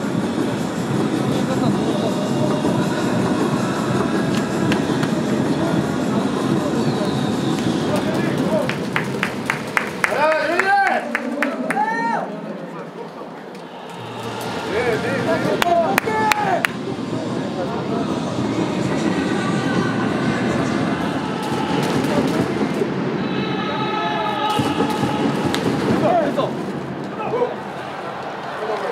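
A crowd cheers and chants in a large stadium.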